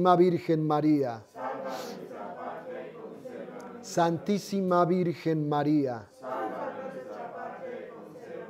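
An elderly man sings a slow chant close by.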